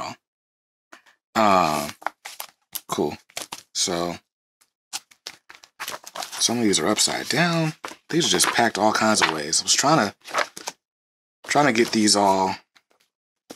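Comic books slide and pages rustle as they are shuffled.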